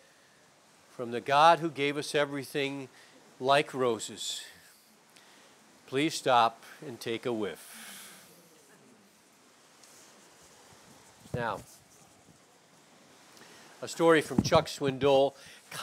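A man speaks calmly and clearly, pausing between phrases.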